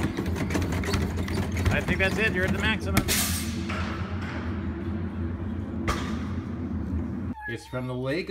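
A hand pump handle clanks and rattles rapidly.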